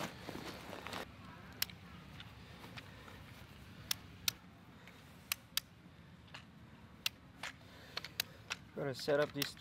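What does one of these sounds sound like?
Tripod legs click and snap into place.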